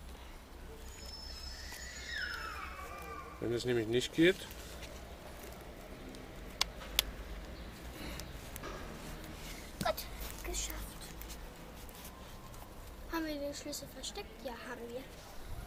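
A hook-and-loop strap rips open and presses shut.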